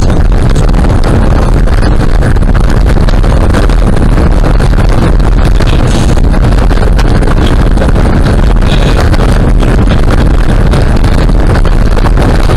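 Car tyres rumble steadily on a rough road.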